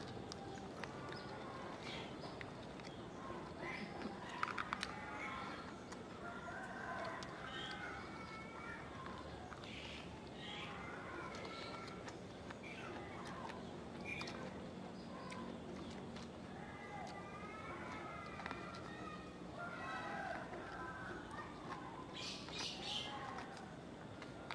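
A man chews and munches food noisily.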